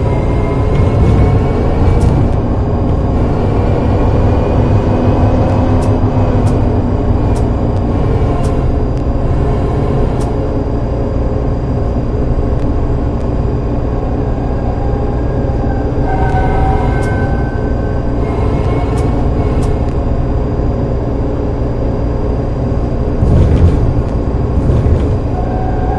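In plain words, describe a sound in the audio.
Tram wheels click over rail joints.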